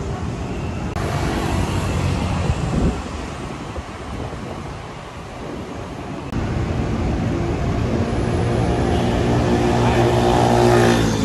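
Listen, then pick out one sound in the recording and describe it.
Traffic hums steadily along a nearby road outdoors.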